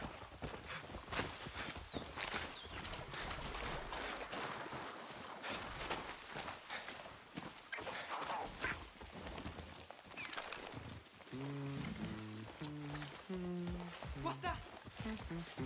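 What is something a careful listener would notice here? Footsteps rustle through tall grass and leaves.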